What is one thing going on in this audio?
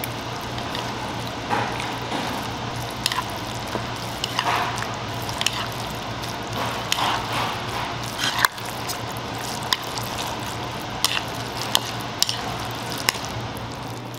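Noodles squelch wetly as they are stirred in thick sauce.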